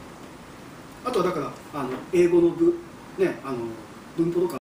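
A man speaks clearly and calmly close by.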